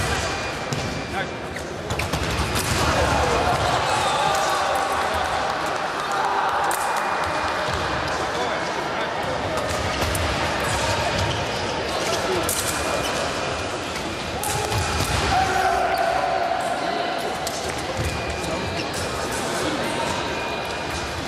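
Shoes stamp and squeak on a wooden floor.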